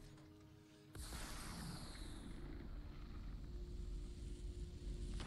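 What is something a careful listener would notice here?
A magical energy blast whooshes and crackles.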